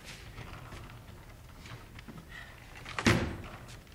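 A heavy trunk lid creaks open and bangs.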